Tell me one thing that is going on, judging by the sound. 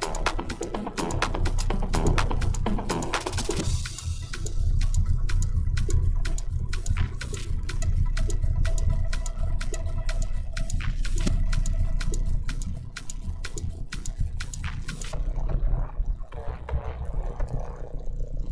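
Electronic dance music plays with a pounding beat and crisp hi-hats.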